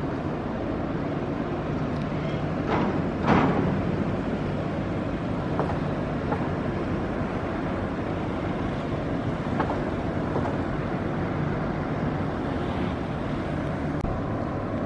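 A boat engine rumbles steadily close by.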